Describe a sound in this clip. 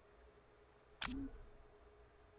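A short electronic swoosh sounds once.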